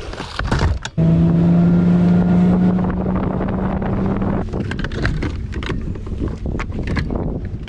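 A boat's outboard motor starts and hums steadily.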